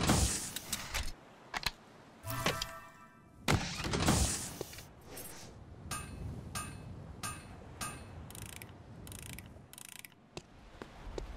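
Short electronic game sound effects chime and click in quick bursts.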